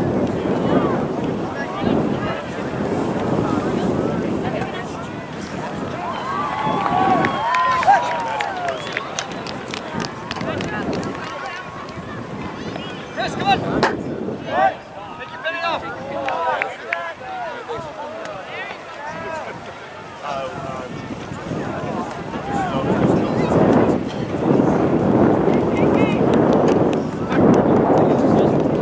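Wind blows outdoors across an open field.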